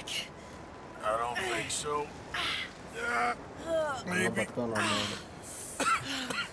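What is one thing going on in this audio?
A man answers in a strained, groaning voice, close by.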